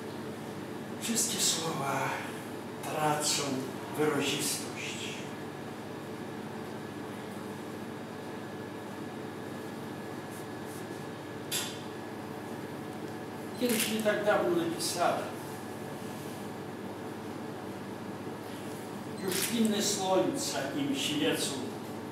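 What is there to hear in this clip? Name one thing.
An elderly man reads aloud calmly, in short bursts with long pauses.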